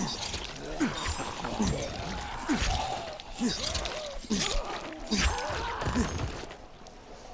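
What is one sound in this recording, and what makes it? Groaning creatures snarl and growl.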